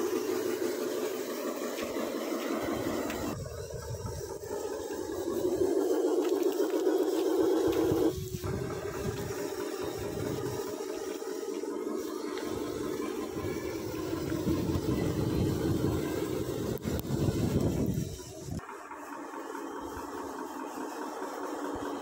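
Plastic wheels rumble over rough ground.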